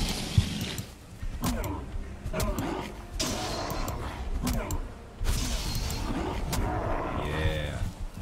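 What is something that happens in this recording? A weapon swings and strikes a creature with sharp thuds.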